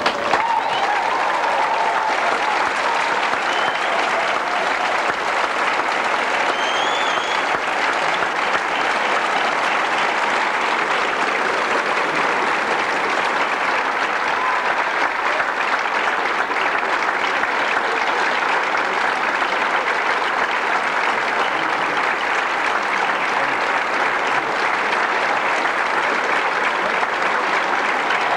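A large audience applauds steadily in a big echoing hall.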